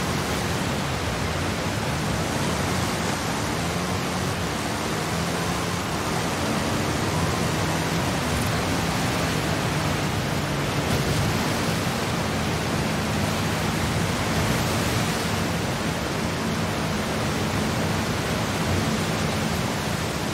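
An engine roars steadily at high speed.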